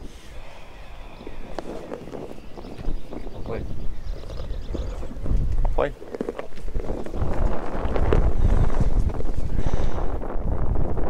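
A young man talks nearby outdoors.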